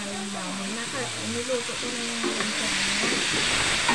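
Pieces of pork tumble into a hot wok and sizzle.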